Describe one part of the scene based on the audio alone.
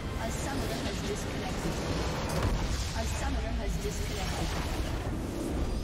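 A stone tower explodes with a loud crash.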